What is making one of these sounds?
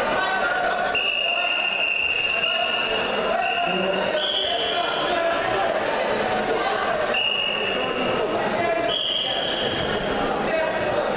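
A referee blows a whistle in several sharp blasts.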